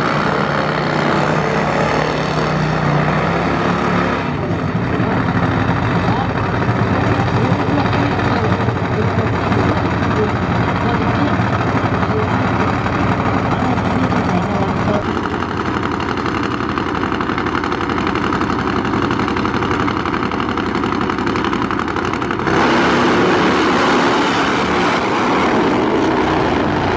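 Drag motorcycle engines roar loudly close by.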